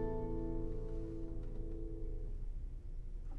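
A classical guitar plays a slow, ringing melody in a large echoing hall.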